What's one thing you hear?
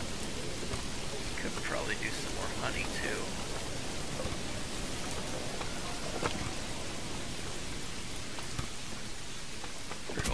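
Heavy rain falls steadily outdoors.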